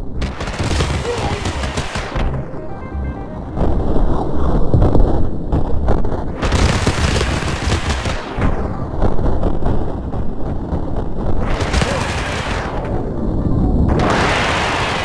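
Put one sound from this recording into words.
Rocks crash and tumble.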